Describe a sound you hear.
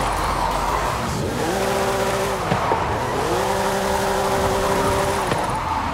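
Tyres screech and squeal on cobblestones.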